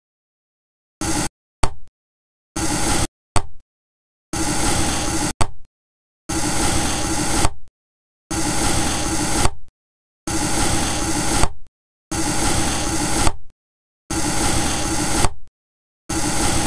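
A knife slices through something soft, over and over.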